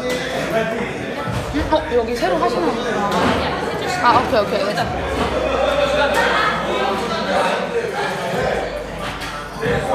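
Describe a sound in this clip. A crowd of men and women chatter in a busy, echoing room.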